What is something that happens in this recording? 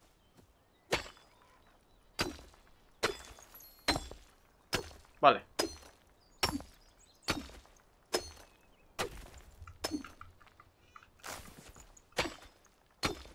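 A pick strikes stone in sharp, repeated blows.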